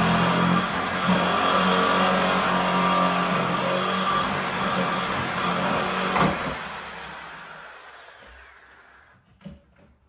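An air compressor runs loudly with a steady hum, then winds down and stops.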